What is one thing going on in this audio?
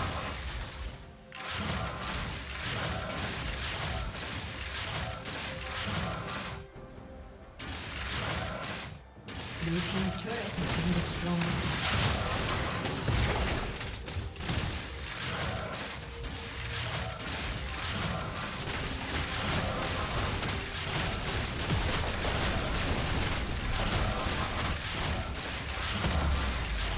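Game combat sounds clash, zap and crackle in quick bursts.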